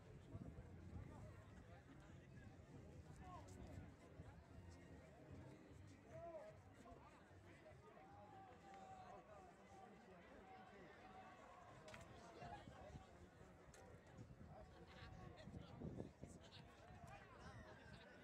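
A crowd of spectators murmurs and calls out outdoors.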